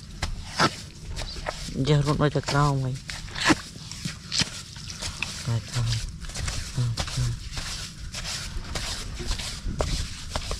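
Hands scrape and dig through dry crumbly dirt.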